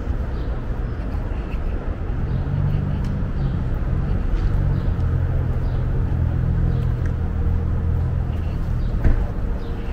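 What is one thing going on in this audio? City traffic hums steadily outdoors.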